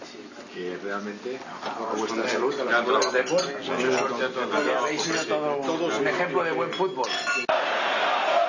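Men talk and laugh together around a table.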